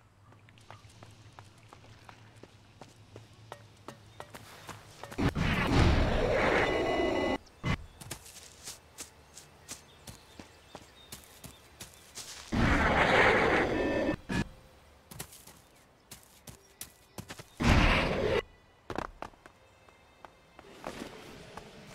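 Footsteps patter quickly on dirt and pavement.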